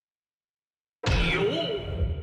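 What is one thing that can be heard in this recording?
A loud whooshing effect bursts in as a selection is confirmed.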